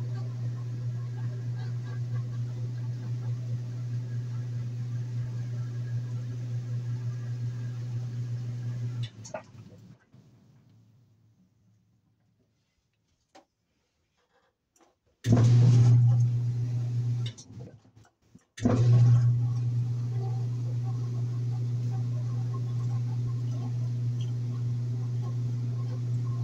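A washing machine drum spins with a steady low hum, then winds down and starts again.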